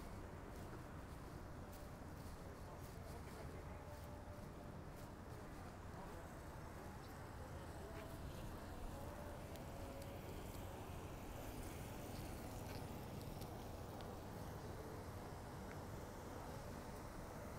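City traffic hums steadily outdoors.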